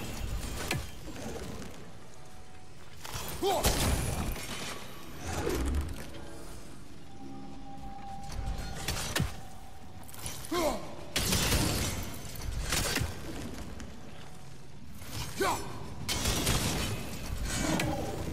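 An axe is thrown and thuds into a target again and again.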